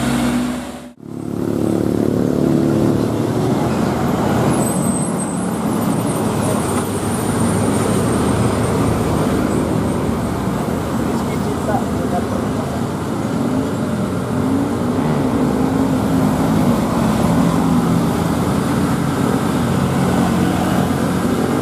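Another loaded diesel dump truck labors uphill under load.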